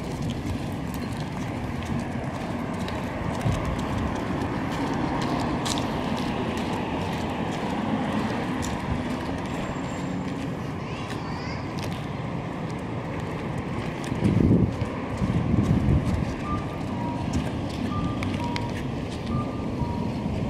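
Footsteps fall steadily on pavement outdoors.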